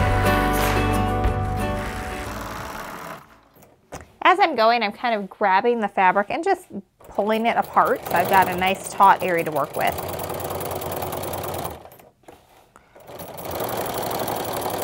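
A sewing machine stitches with a fast, rattling whir.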